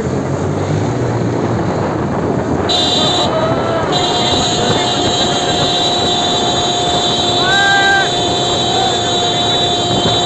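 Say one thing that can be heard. Motorcycle engines rumble steadily close by.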